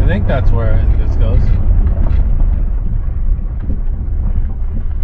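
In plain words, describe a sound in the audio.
Tyres crunch and rumble over a bumpy dirt track.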